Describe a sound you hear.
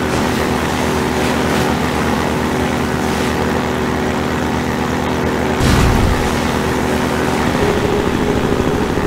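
Water splashes and sprays against a hull.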